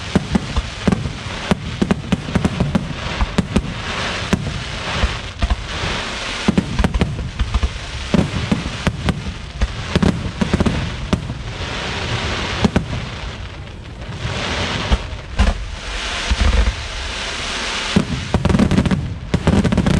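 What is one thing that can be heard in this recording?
Fireworks burst with loud booms and sharp bangs.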